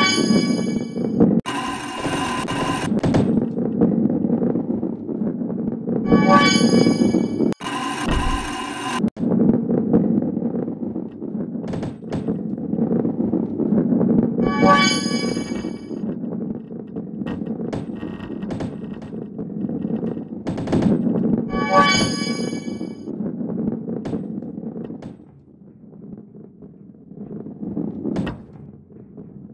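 A heavy ball rolls with a steady low rumble.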